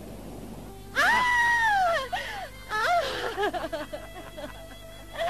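A young woman laughs loudly and shrilly, close by.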